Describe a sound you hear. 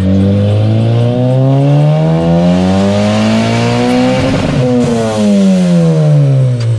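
A car engine revs hard through its gears, rising in pitch and dropping at each shift.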